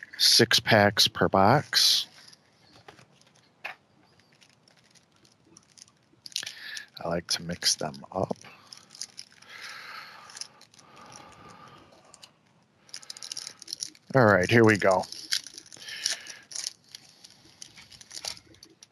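Plastic wrappers crinkle and tear.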